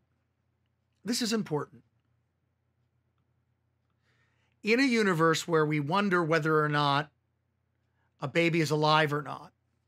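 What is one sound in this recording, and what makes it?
A man speaks with animation, close to a microphone.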